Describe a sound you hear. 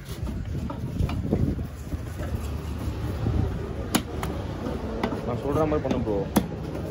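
A knife slices wetly through fish flesh.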